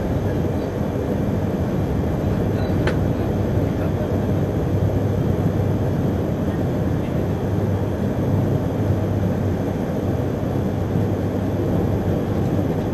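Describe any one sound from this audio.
Wind rushes and buffets loudly past at speed outdoors.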